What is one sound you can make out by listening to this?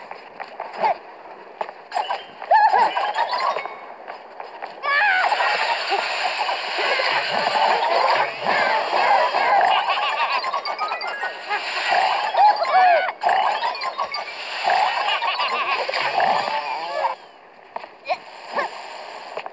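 Bright chimes ring quickly again and again as bananas are picked up.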